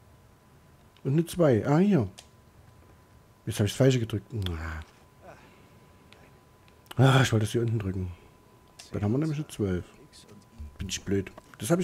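A man talks to himself in short, thoughtful bursts, close by.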